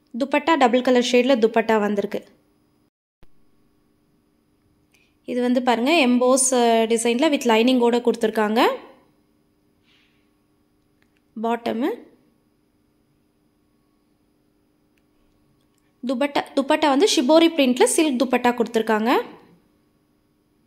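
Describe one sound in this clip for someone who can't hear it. A woman speaks with animation close by, in short bursts.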